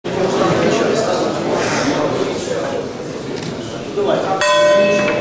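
A crowd murmurs and chatters in an echoing hall.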